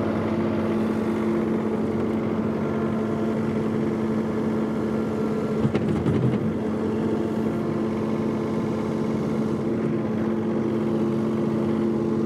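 A tractor engine runs steadily nearby.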